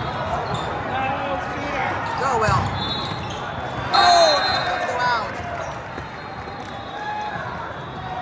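Players shout and call out to each other.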